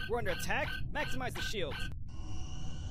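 A man speaks urgently through a headset microphone.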